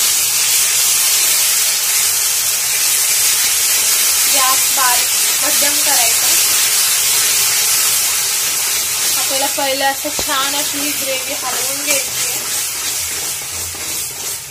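Food sizzles steadily in a hot pan, then dies down.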